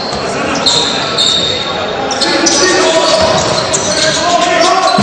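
A crowd of spectators murmurs and cheers in a large echoing hall.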